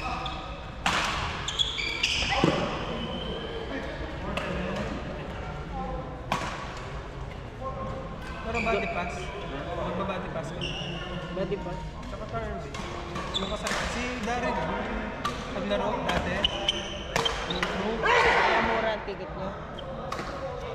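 Shoes squeak on a wooden court.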